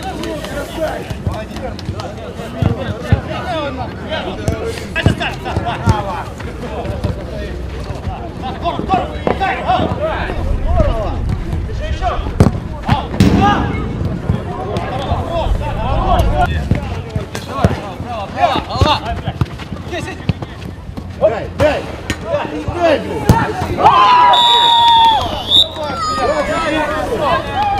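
Men shout and call out to each other outdoors.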